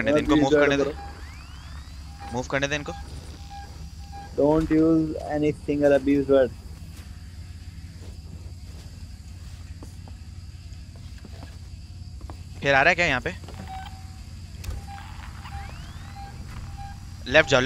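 A tracking device beeps softly at a steady pace.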